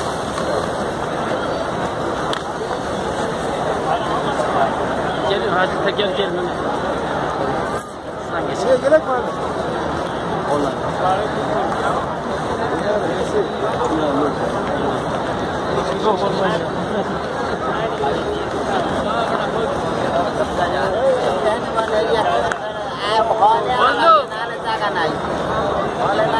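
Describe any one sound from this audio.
A large crowd of men murmurs and chatters outdoors.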